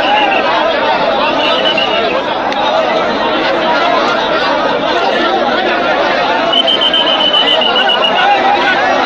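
A large outdoor crowd chatters loudly.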